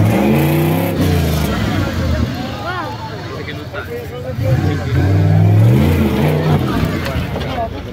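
An off-road vehicle's engine roars and revs as it climbs a steep dirt slope.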